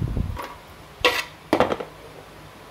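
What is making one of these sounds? Garlic cloves drop into a plastic blender jug.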